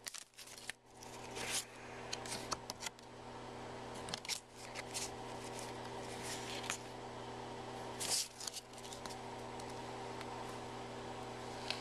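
Trading cards shuffle and slide against each other.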